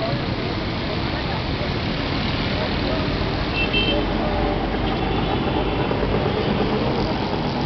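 Busy street traffic rumbles and drones steadily below.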